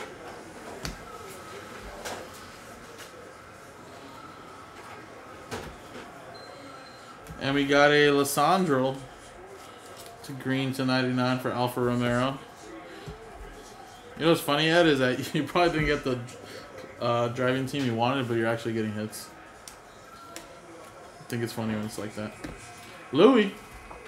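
Trading cards slide and flick against each other in a man's hands.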